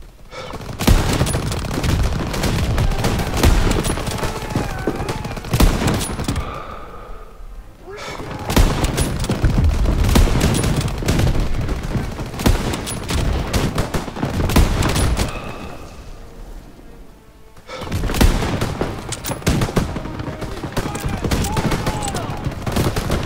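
Rifle shots crack and boom repeatedly.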